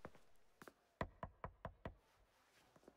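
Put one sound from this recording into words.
Knuckles knock on a door several times.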